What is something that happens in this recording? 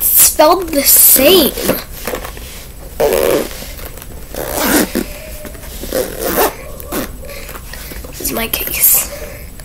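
A young girl talks close to a microphone, in short bursts with pauses.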